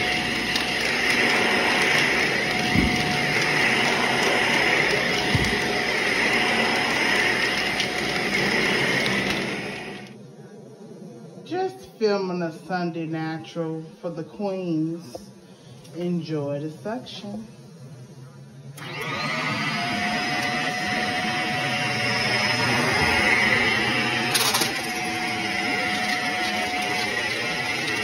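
A vacuum cleaner runs with a loud, steady whine and rush of air.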